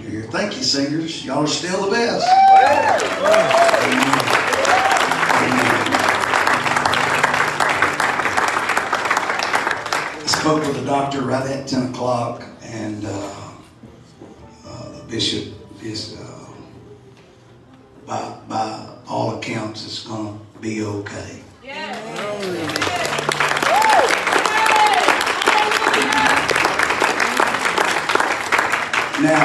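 A man speaks softly into a microphone, heard through loudspeakers in an echoing hall.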